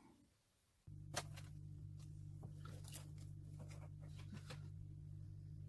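Paper pages rustle and flap as a ring-bound planner is opened.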